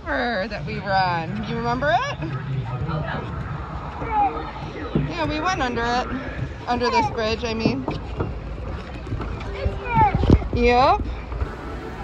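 A young child talks and babbles close by.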